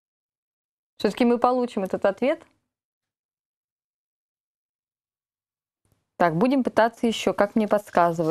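A woman speaks clearly and calmly into a close microphone.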